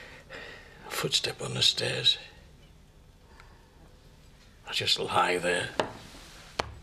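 An older man speaks quietly and tensely, close by.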